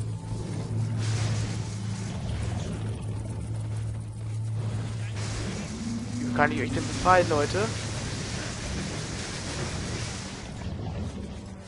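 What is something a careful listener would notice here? Electricity crackles and sizzles in bursts.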